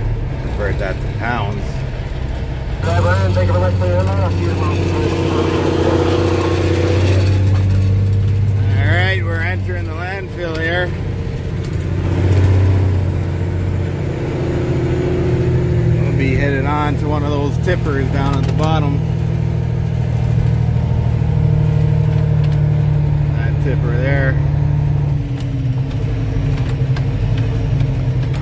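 A truck engine rumbles steadily at low pitch.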